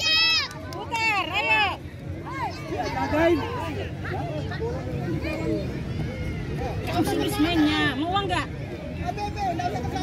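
Young children shout and call out excitedly outdoors.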